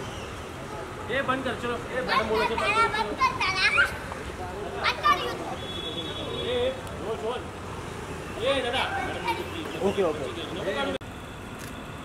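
A woman and a young child talk animatedly nearby.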